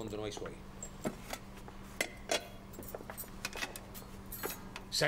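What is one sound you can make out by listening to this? A metal tray clanks and scrapes as it is handled.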